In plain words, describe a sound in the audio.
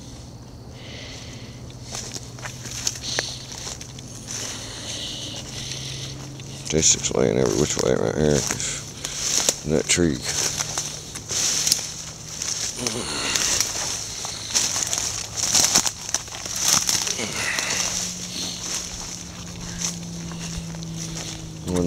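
Footsteps crunch and rustle through dry leaves and brush.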